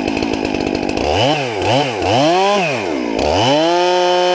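A chainsaw engine revs up and down several times.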